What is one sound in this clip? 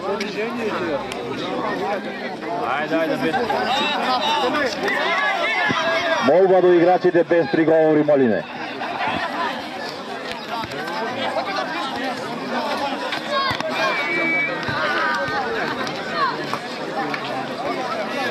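A large crowd of spectators chatters and cheers outdoors.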